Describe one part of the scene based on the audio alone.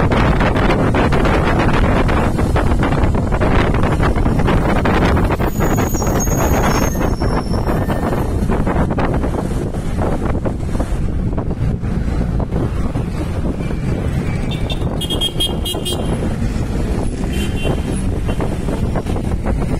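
Wind rumbles and buffets against the microphone from a moving vehicle.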